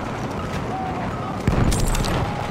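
A rifle fires loud shots close by.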